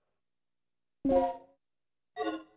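A short jingle plays as an item is picked up.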